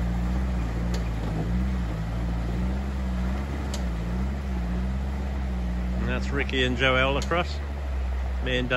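A river flows and splashes over stones.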